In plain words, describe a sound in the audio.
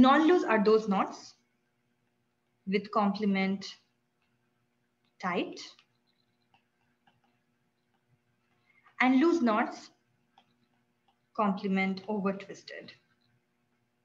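A young woman speaks calmly in short phrases through a microphone, with pauses between them.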